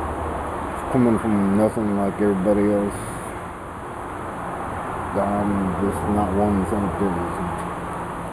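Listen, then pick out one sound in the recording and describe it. A middle-aged man talks calmly close by.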